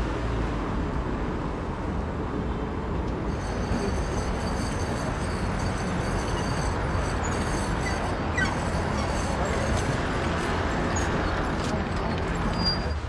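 A car engine hums as a car drives slowly past.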